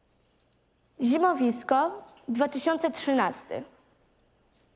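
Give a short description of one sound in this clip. A young girl reads out aloud.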